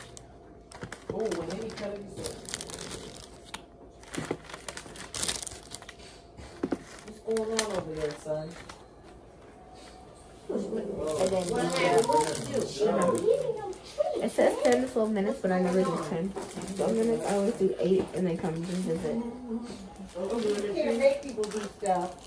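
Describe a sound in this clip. Young women talk with animation nearby.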